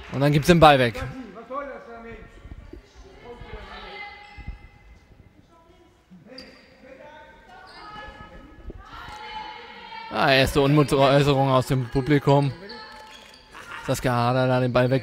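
A man nearby shouts and cheers loudly in an echoing hall.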